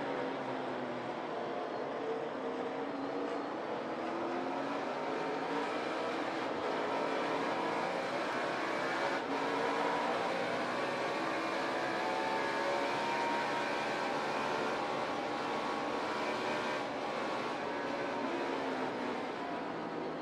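A race car engine roars loudly at high speed, shifting pitch through the corners.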